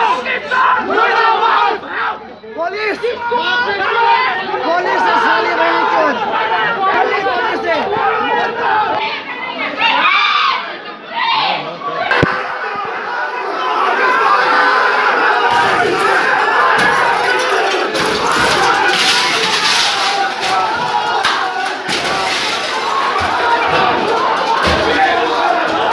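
A crowd of men shouts and clamours close by, outdoors.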